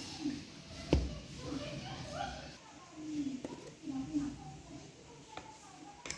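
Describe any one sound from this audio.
A plastic lid twists and pops off a jar.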